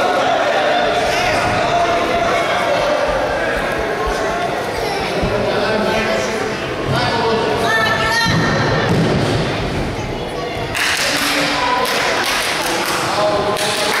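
Bodies thump heavily onto a wrestling mat.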